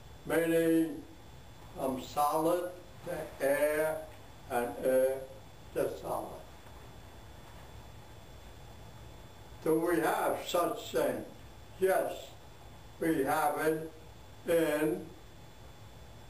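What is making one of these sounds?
An elderly man speaks slowly, in short phrases with long pauses.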